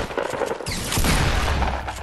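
A shotgun fires in quick bursts.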